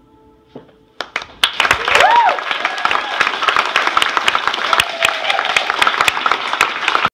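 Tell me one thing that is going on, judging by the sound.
An audience claps loudly and steadily in a small room.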